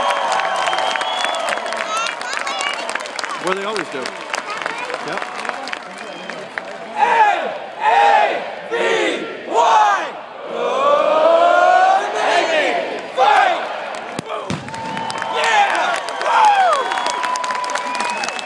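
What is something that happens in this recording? A large crowd chatters and calls out in an open stadium.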